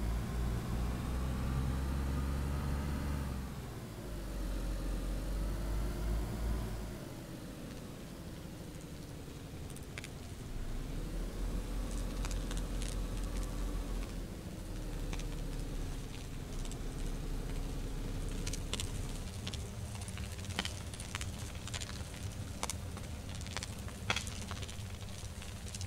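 Tyres crunch and bump over uneven ground.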